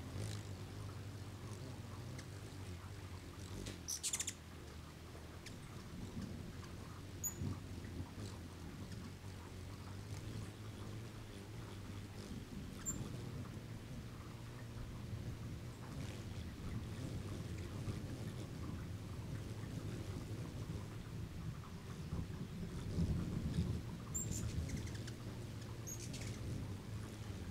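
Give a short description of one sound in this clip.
Hummingbirds' wings hum as they hover close by.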